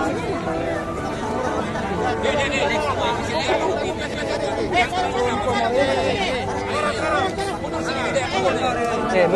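A crowd of men talk over one another close by.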